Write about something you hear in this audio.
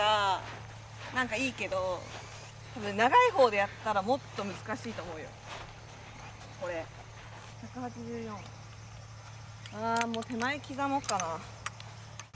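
A young woman talks casually nearby, outdoors.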